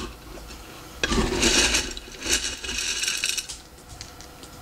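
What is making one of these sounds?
Dry kibble rattles and clatters inside a glass jar.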